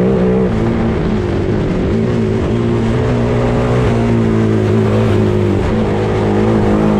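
Tyres crunch and rumble over a dirt track.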